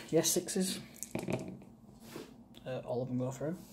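Dice clatter as they are rolled onto a hard board.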